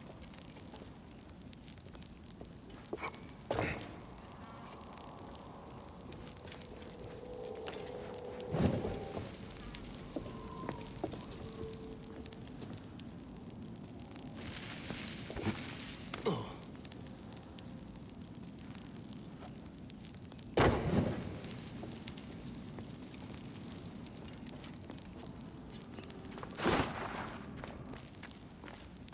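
A torch flame crackles softly.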